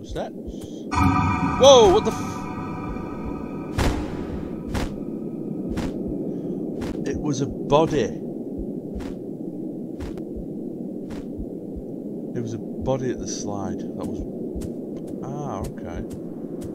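A man speaks now and then, close to a microphone.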